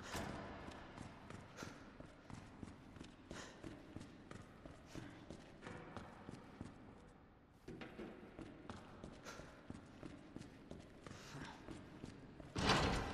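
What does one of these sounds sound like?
Footsteps tread steadily on a hard concrete floor.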